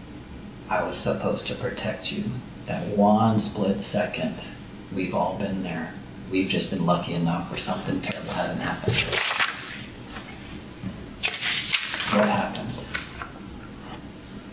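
A man speaks calmly, heard through a distant room microphone.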